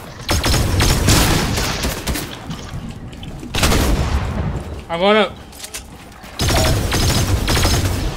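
A shotgun fires with sharp blasts.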